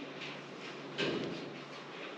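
Metal bed springs creak and rattle as a hand tugs on them.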